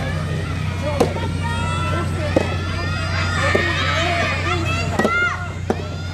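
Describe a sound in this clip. Tennis balls are struck with sharp pops outdoors.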